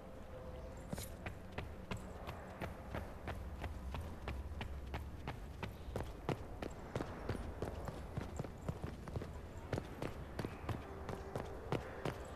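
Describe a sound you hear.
Footsteps hurry across a hard stone floor and up stone stairs.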